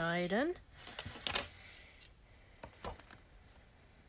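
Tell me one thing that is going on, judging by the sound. Paper rustles and slides as it is picked up and moved.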